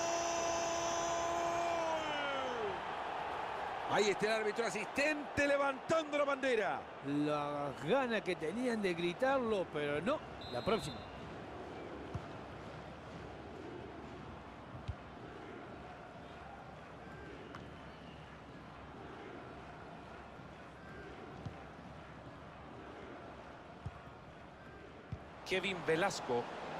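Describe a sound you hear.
A stadium crowd roars and chants steadily in the distance.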